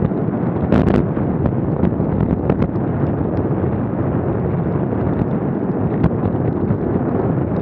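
Wind rushes loudly past a moving bicycle.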